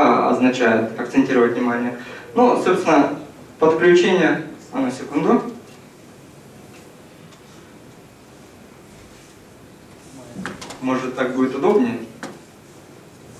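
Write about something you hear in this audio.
A young man speaks calmly and close by into a microphone, with pauses.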